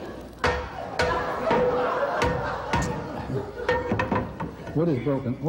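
A spatula clanks and scrapes against a metal pan.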